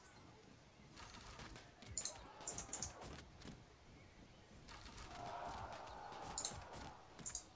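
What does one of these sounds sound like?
Muskets crackle in scattered volleys.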